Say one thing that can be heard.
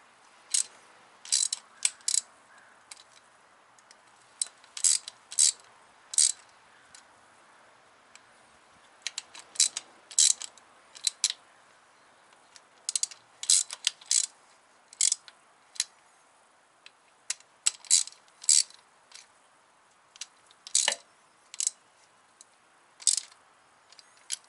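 A ratchet wrench clicks rapidly in short bursts.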